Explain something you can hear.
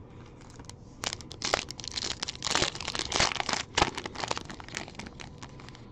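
A foil trading card pack crinkles as it is torn open by hand.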